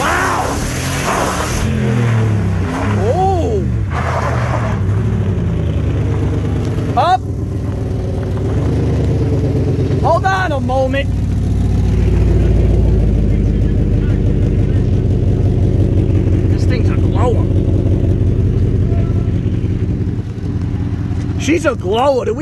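A truck engine roars and revs hard.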